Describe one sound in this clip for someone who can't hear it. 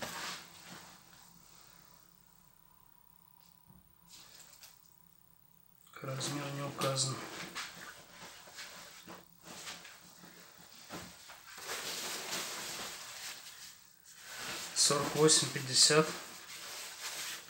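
Nylon fabric rustles and swishes as jackets are handled.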